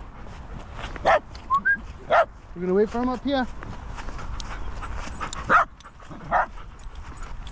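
A dog sniffs and pants close by.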